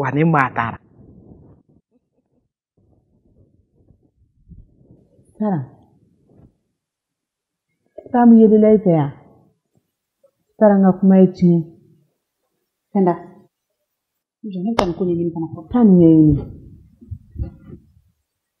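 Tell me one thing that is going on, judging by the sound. Another woman speaks firmly.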